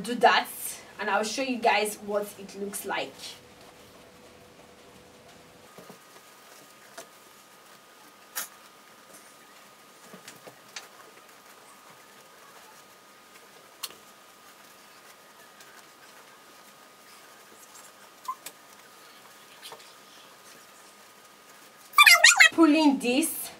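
A plastic bag rustles and crinkles as hands twist and tie it.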